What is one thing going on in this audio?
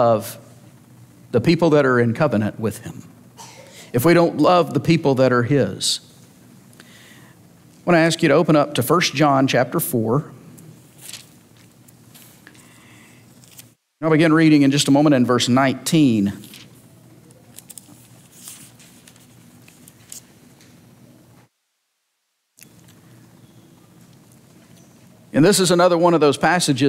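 A man speaks calmly through a microphone in an echoing hall, with pauses.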